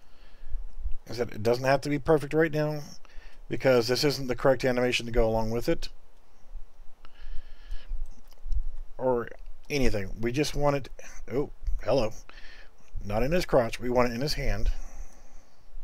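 A man talks calmly and closely into a microphone, in bursts with pauses.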